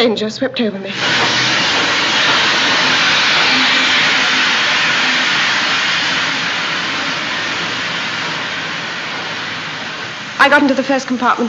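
Steam hisses loudly from a train engine and slowly fades.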